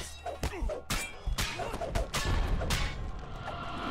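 Weapons clash and strike in a short fight.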